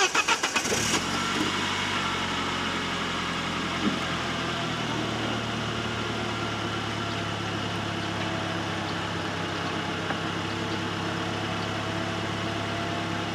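An electric motor whirs steadily as a convertible roof folds and lifts.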